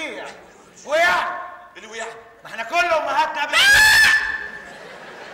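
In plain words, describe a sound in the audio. A man shouts loudly and theatrically into a microphone.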